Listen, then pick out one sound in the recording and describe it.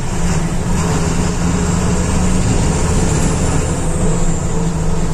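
Road noise and rattling fill the moving bus.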